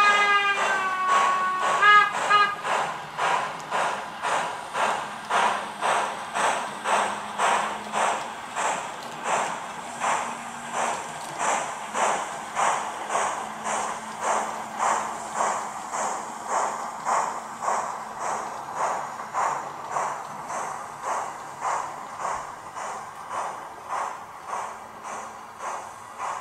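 Model train wheels rumble along the track.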